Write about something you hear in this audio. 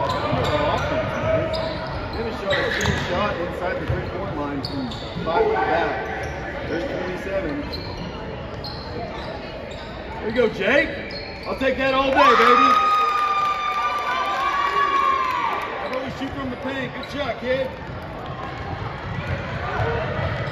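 Young players call out to each other in an echoing gym.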